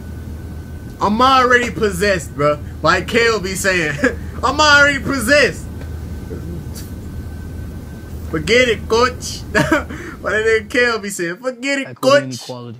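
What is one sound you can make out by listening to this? A young man talks with excitement close to a microphone.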